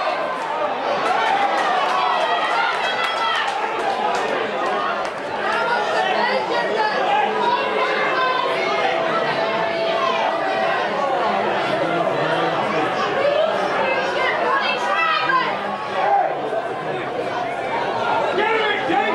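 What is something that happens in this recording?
Men shout and call to each other outdoors on an open field.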